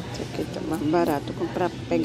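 Keys jingle on a ring.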